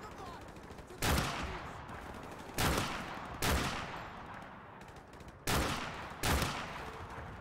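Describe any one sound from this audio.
Loud gunshots from a video game ring out several times, with echoing tails.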